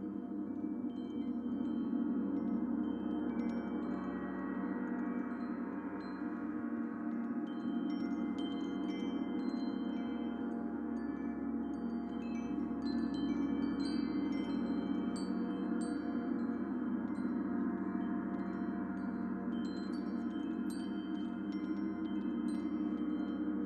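Small chimes tinkle in bright, scattered pings.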